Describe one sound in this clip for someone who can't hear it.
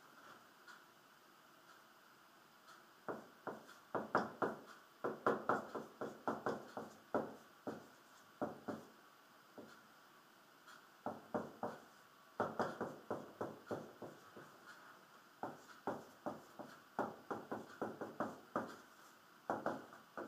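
A marker squeaks and taps against a whiteboard.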